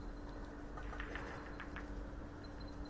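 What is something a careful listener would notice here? Snooker balls knock together and click.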